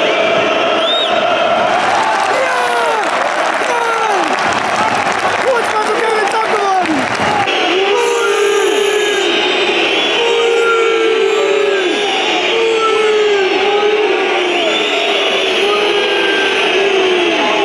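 A large stadium crowd whistles loudly and shrilly.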